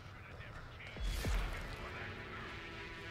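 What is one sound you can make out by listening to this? A heavy impact booms from a game.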